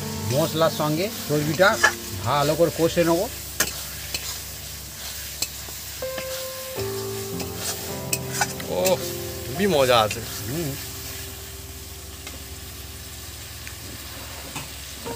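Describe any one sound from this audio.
Thick sauce sizzles and bubbles in a wok.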